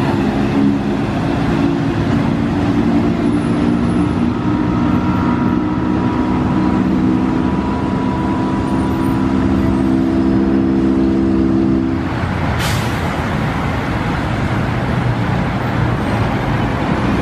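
Traffic hums on a city road.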